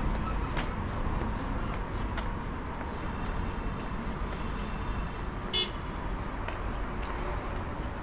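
A steady low hum of city traffic fills the street outdoors.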